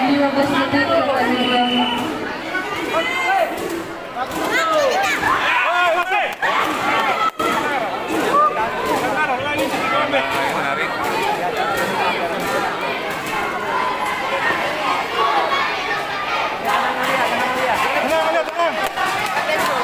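A crowd cheers and shouts throughout a large echoing hall.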